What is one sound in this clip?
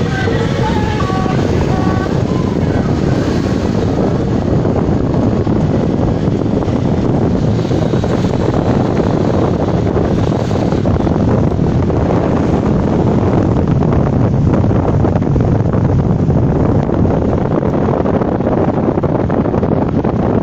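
Wind rushes past the open car window.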